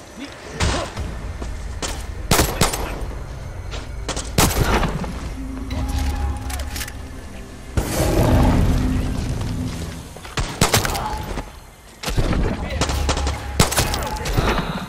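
Pistol shots crack sharply, one at a time.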